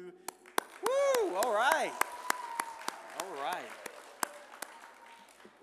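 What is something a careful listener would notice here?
A young man claps his hands in a steady rhythm.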